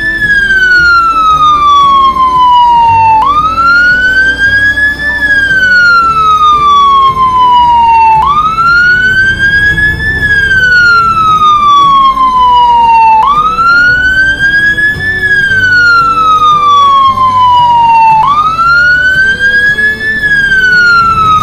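A siren wails, rising and falling in slow repeating cycles.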